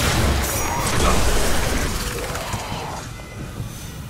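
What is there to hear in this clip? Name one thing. A loud blast booms and crackles.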